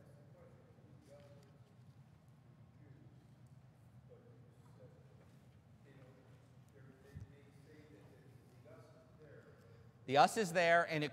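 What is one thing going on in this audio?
A man speaks softly at a distance.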